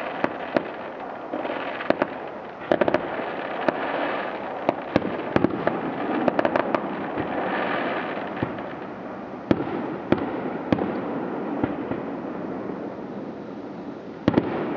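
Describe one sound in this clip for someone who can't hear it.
Fireworks bang and pop in the distance.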